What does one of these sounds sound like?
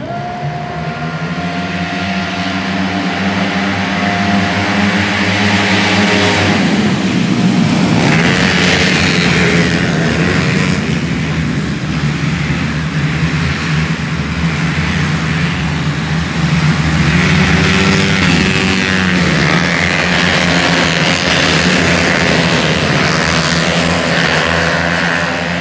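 Motorcycle engines whine and rev loudly as the bikes race past.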